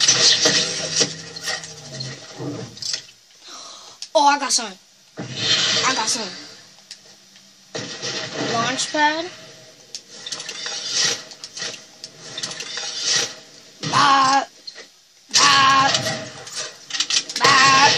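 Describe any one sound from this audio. Video game sound effects play from a television's speakers.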